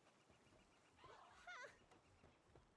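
A cartoonish creature lets out a short, warbling cry.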